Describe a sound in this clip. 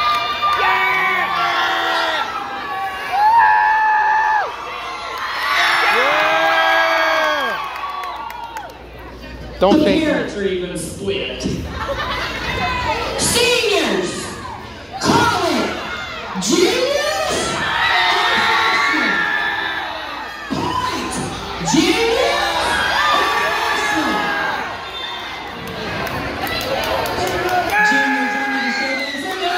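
A large crowd murmurs and cheers in a big echoing gym.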